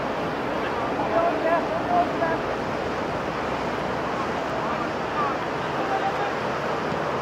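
Young men shout to each other from a distance.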